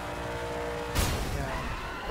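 A car lands hard with a heavy thud.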